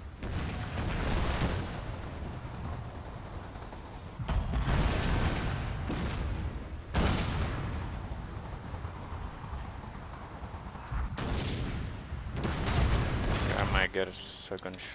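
Cannons boom and rumble in a loud battle.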